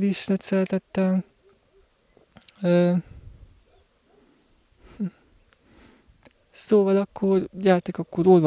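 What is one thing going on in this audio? A young man speaks close into a microphone, calmly, in short bursts with pauses.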